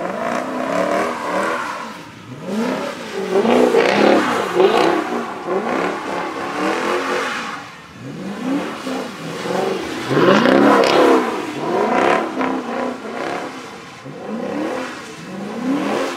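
Tyres squeal on wet pavement.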